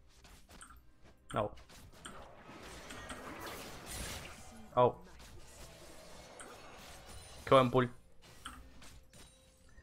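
Game spells crackle and weapons clash in a fight.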